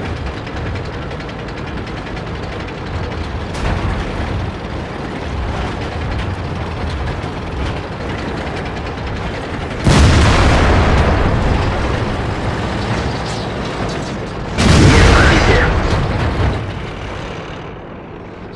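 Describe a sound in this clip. A heavy tank's engine rumbles as it drives.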